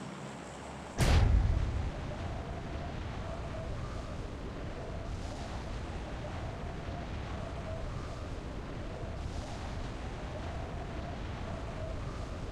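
Wind rushes past in a sudden loud gust, then roars on steadily.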